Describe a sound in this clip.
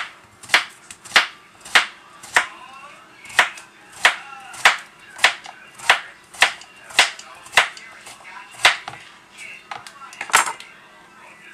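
A knife chops through a vegetable on a cutting board in steady, even strokes.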